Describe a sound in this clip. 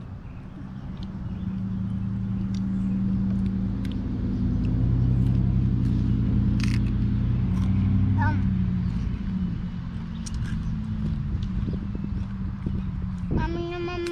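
Crisp chips crunch as they are eaten up close.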